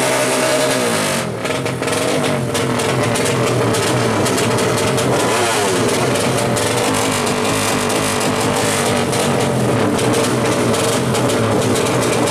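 A motorcycle engine revs loudly and repeatedly up close.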